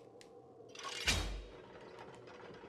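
A sword whooshes through the air.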